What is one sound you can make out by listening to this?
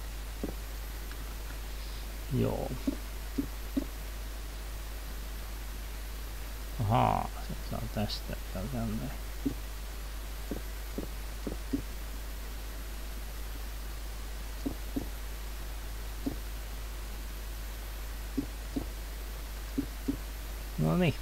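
Short knocks of stone blocks being broken and placed sound now and then.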